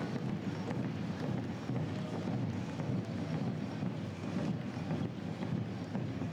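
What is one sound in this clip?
Runners' shoes patter on the road.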